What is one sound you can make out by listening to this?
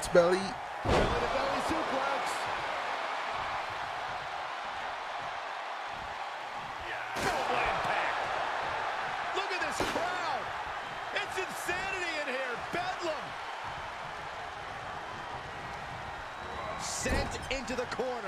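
Heavy thuds of bodies slamming onto a wrestling ring mat.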